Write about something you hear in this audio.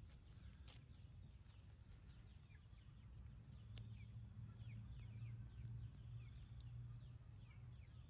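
A wire fence rattles softly as small monkeys climb it.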